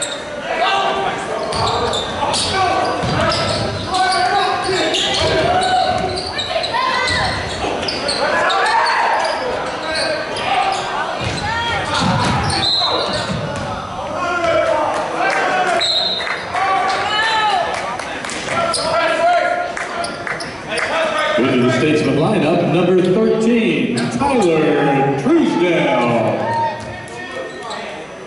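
A crowd of spectators cheers and shouts in an echoing hall.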